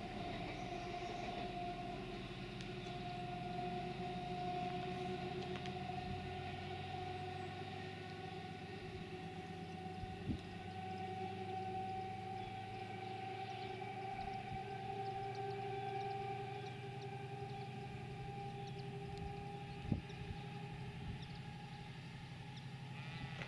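A diesel locomotive engine rumbles steadily as it pulls away.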